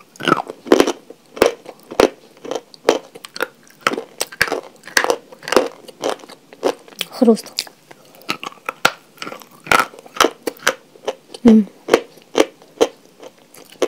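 Pieces of chalk clink against a glass bowl.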